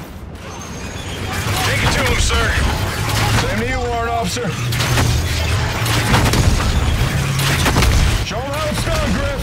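A heavy metal door rumbles as it slides open.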